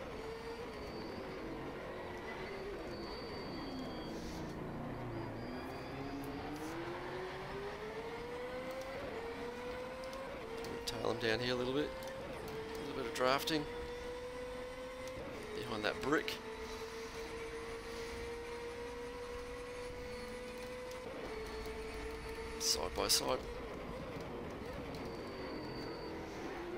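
A racing car engine drones and climbs in pitch as it shifts up through the gears.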